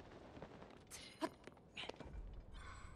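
Feet land with a thud on stone.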